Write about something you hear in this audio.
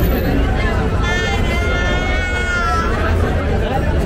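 A young woman laughs out loud close by.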